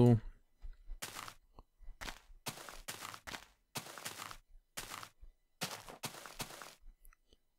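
Footsteps crunch on grass in short bursts.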